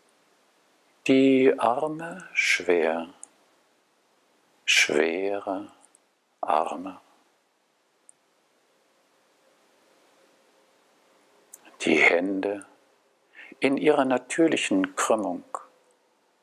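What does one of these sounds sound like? A man speaks calmly in short phrases with long pauses.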